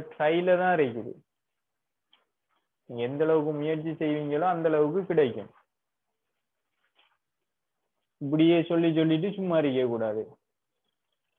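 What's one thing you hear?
A young man speaks calmly and close by, explaining.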